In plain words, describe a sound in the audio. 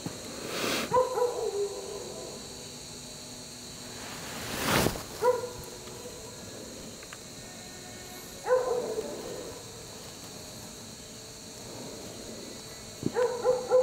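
A man speaks in short bursts into a handheld radio.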